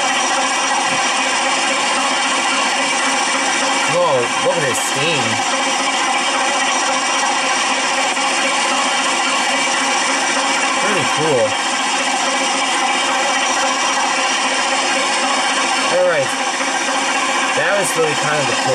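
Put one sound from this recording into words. A steam locomotive idles with a steady low hiss.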